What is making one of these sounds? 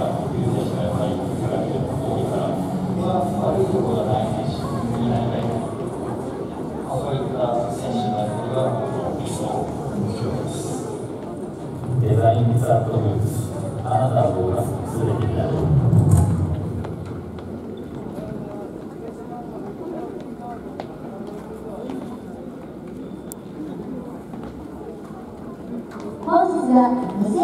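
Men chatter in a large, echoing indoor hall.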